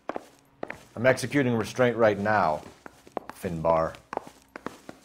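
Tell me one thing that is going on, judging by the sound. A second man answers calmly and close by.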